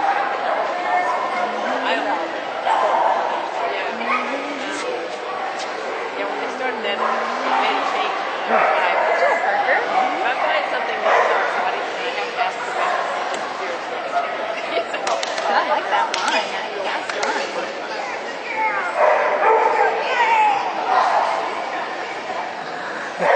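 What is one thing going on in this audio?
A woman calls out to a dog with animation.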